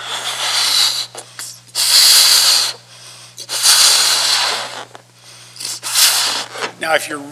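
A man blows hard into a balloon in quick, breathy puffs.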